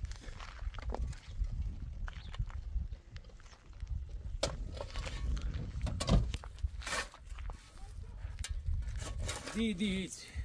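A shovel scrapes and digs into dry earth.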